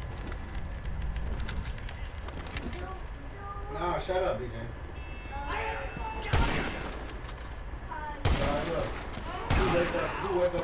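Gunshots crack sharply, one at a time, with short gaps between them.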